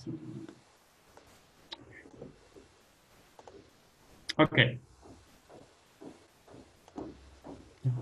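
A man speaks calmly and slowly into a microphone, close by.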